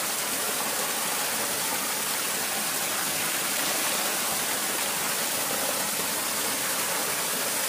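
Water pours from a bucket onto a sluice.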